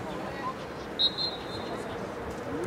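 A referee's whistle blows briefly.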